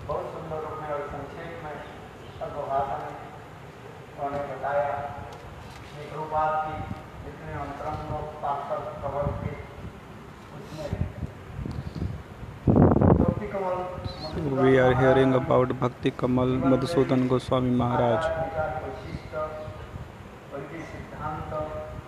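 An elderly man speaks calmly into a microphone, heard through a loudspeaker.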